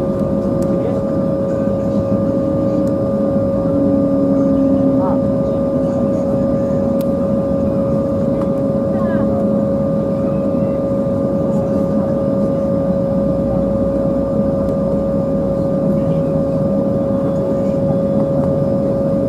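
A jet engine hums and whines steadily while an airliner taxis.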